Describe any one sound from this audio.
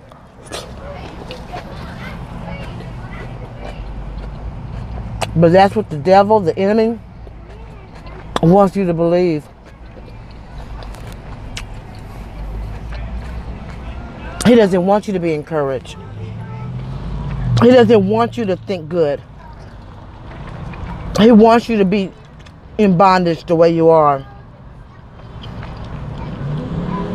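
A woman chews food noisily.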